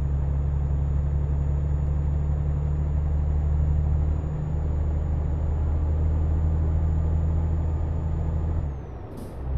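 A truck engine hums low and steady as it drives.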